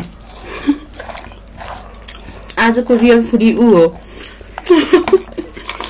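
Chopsticks scrape and click against a plate of noodles.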